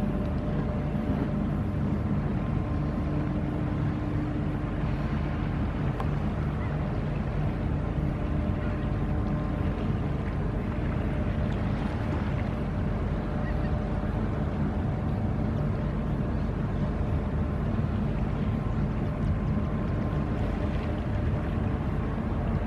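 A ship's engine drones low and steady in the distance.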